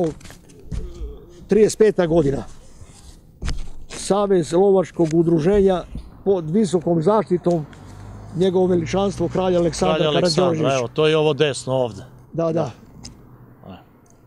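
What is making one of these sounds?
An elderly man speaks calmly into a nearby microphone.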